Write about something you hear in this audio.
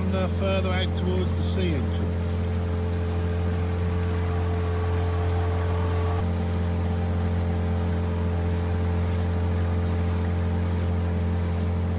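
A boat's outboard motor drones steadily.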